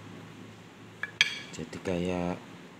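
Small metal parts click against each other.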